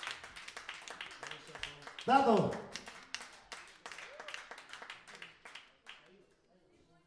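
Hands clap in a quick steady rhythm.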